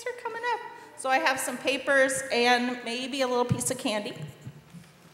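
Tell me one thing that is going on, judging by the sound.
A woman sings through a microphone in an echoing hall.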